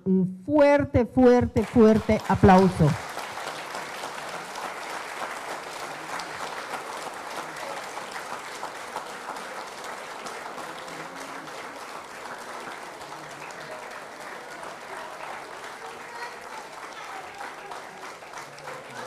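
A crowd of men and women murmur and pray quietly together in a room.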